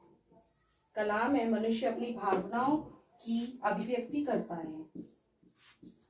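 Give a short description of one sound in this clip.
A young woman speaks clearly and calmly, close by.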